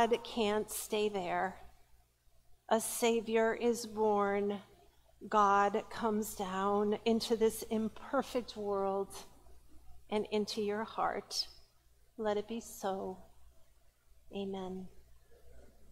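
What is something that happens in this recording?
A woman speaks calmly through a microphone in a large echoing room.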